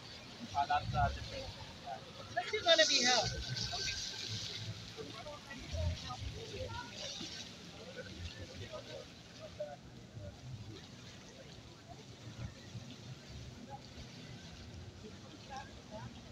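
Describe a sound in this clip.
A woman talks casually through a microphone and loudspeaker outdoors.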